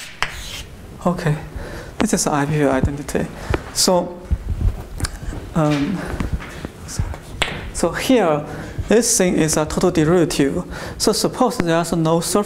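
A young man speaks calmly to a room.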